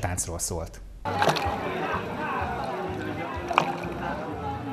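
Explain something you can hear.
A pot of soup bubbles and simmers outdoors.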